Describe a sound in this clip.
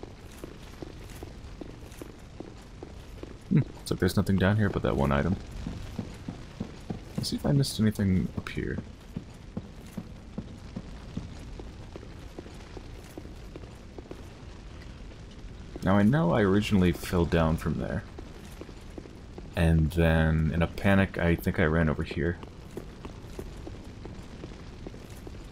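Armoured footsteps clank on stone floors and stairs.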